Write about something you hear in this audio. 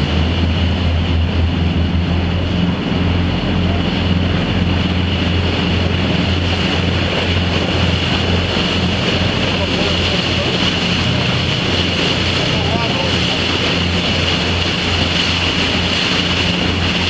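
Water churns and splashes against a moving boat's hull.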